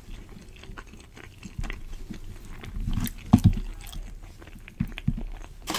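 A fork scrapes and taps against a plate close to a microphone.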